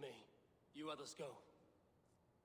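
A man speaks calmly and firmly, close by.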